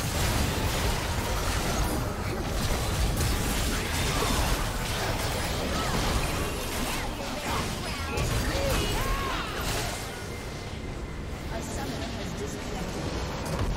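Game spell effects crackle and blast in a busy battle.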